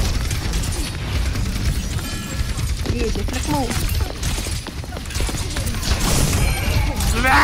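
A game weapon fires a rapid buzzing beam.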